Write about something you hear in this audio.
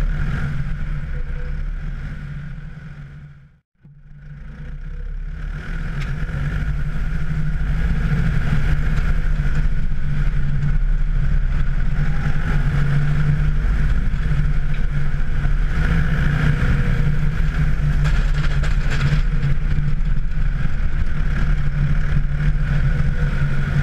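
A snow blower attachment whirs as it throws snow.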